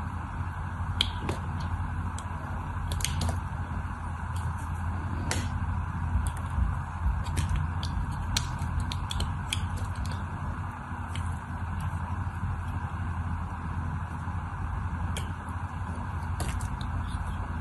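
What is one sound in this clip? Small soap flakes crackle and snap as they break off.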